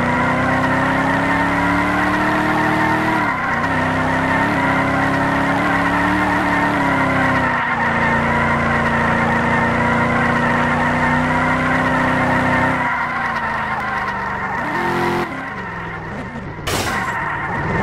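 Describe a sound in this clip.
A car engine roars steadily at speed, its pitch dipping as it shifts and slows near the end.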